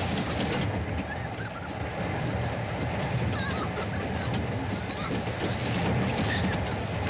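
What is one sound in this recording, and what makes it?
A roller coaster rumbles and clatters along a wooden track.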